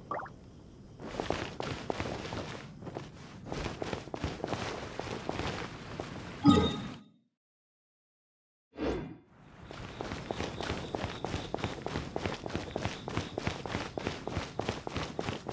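Quick footsteps patter on stone paving.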